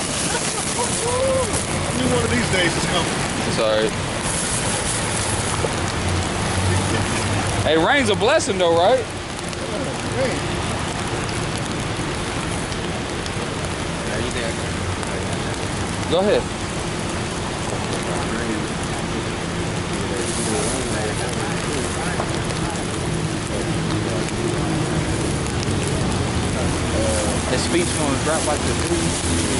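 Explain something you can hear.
Rain patters steadily on umbrellas outdoors.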